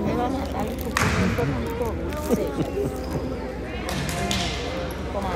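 A volleyball is struck with a slap.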